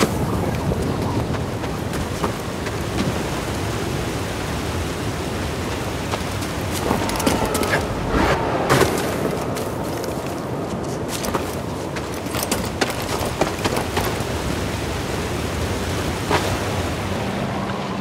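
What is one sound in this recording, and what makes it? Water splashes underfoot while sliding down a stream.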